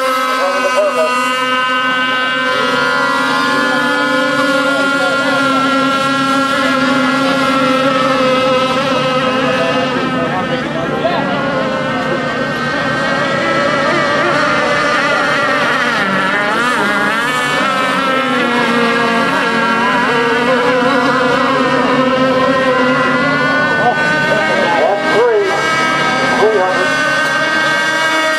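Several small racing boat engines whine loudly at a high pitch, rising and falling as the boats speed past.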